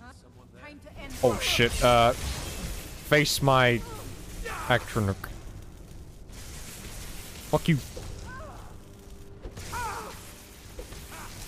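A crackling electric spell buzzes and zaps in loud bursts.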